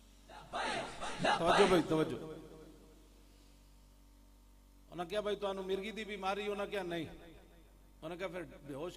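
An elderly man speaks forcefully into a microphone over loudspeakers, pausing between phrases.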